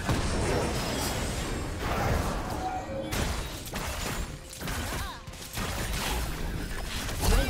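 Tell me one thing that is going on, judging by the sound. Magic blasts and weapon hits crackle and thud in a busy video game fight.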